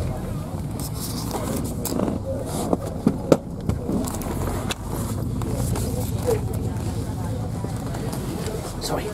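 Loose fittings rattle and knock inside a moving bus.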